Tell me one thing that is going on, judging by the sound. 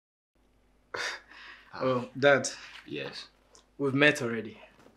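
A young man speaks close by in a playful, teasing voice.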